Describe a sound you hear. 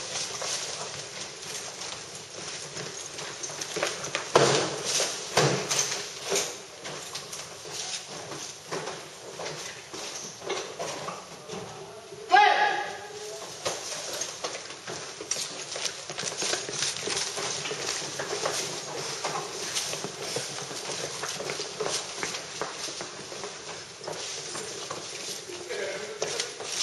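Gear and rifles rattle and clatter.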